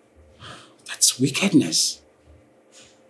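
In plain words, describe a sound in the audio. A young woman speaks in a worried, pleading voice close by.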